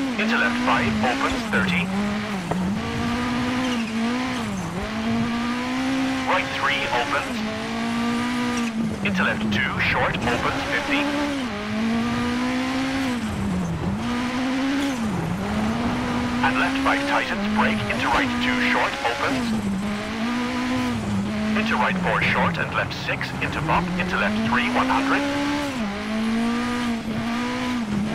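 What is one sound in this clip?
Tyres crunch and skid on snowy gravel.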